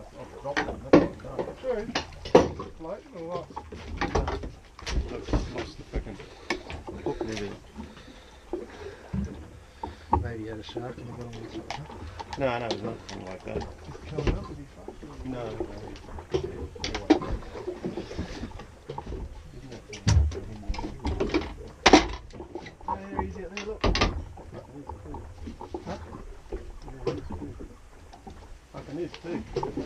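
Men talk and call out to each other close by, outdoors.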